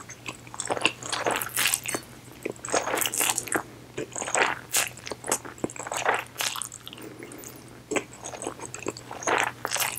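A woman slurps noodles loudly, close to a microphone.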